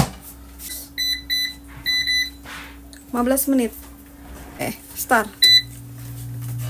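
An appliance's touch buttons beep.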